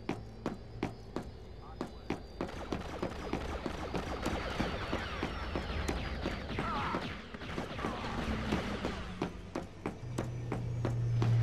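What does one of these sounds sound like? Quick footsteps thud steadily on a hard floor.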